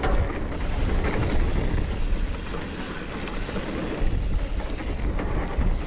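Wind rushes past loudly as the bike moves fast.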